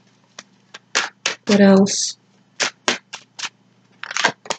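A pen clicks and taps.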